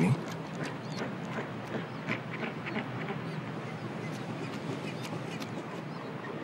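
A penguin chick squeaks close by.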